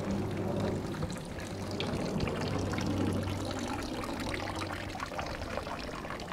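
Water trickles from a spout and splashes below.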